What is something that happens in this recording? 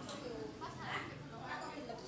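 A teenage girl laughs.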